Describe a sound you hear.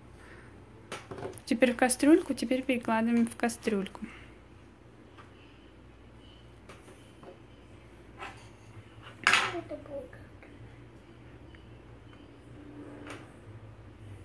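Plastic toy dishes clink and tap on a table.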